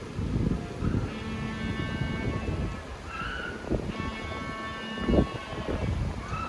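Penguins call with loud braying honks.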